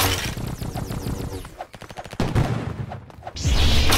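A sword swings and strikes with sharp whooshing hits.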